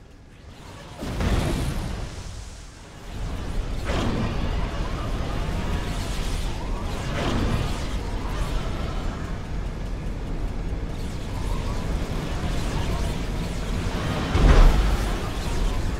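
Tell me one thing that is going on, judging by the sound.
Explosions boom now and then in a battle.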